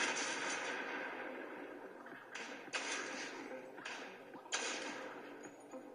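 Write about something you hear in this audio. Game sniper shots ring out with a lingering echo.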